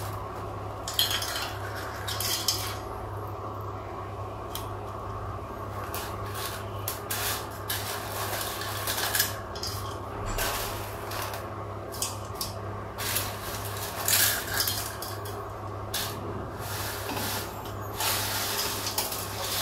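A metal plate clinks against the rim of a pot.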